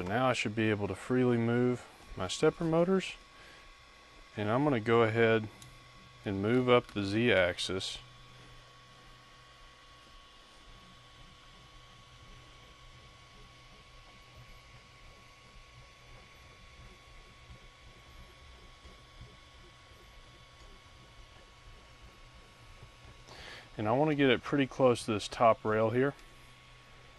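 A man speaks calmly close by, in short bursts.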